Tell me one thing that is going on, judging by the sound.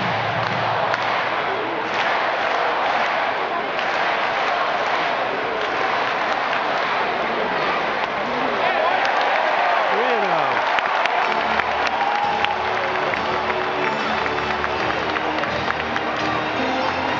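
A large stadium crowd cheers.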